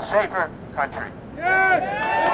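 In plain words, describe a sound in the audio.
An elderly man speaks loudly through a megaphone.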